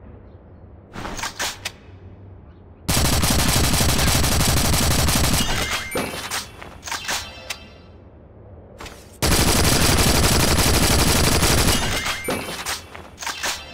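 A rifle magazine clicks and clatters during a reload.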